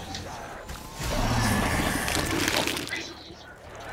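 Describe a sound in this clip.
A fiery explosion bursts nearby.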